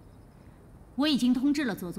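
A young woman answers in a higher voice close by.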